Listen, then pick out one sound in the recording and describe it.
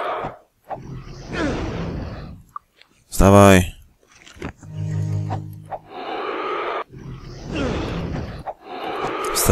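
Weapon blows strike a monster.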